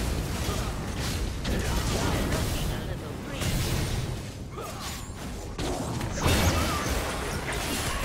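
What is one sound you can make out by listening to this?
Blows and impacts thud repeatedly.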